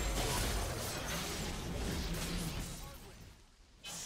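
Spell effects crackle and clash in a fast battle.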